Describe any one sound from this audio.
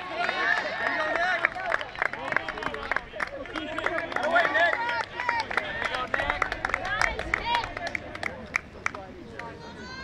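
A crowd of spectators cheers and shouts outdoors at a distance.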